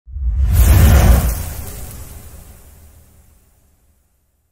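Stone shatters with a loud crash that slowly fades away.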